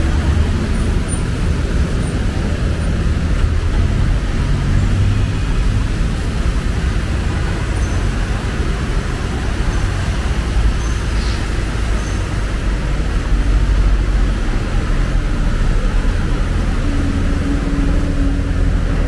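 Vehicle engines rumble low and steadily nearby.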